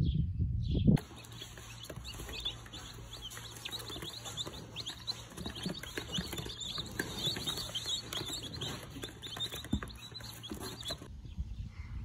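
Many chicks peep and cheep busily, close by.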